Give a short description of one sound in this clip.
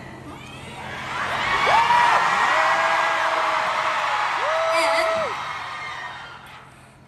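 A large crowd screams and cheers in a big echoing hall.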